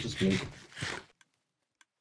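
Blocks break with short crunching knocks.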